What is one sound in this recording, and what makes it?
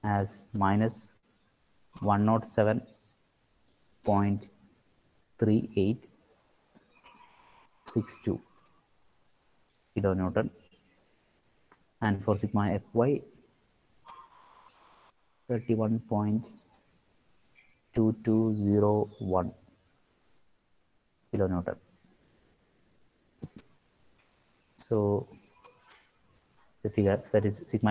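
A man talks calmly in short phrases through a microphone, as if explaining.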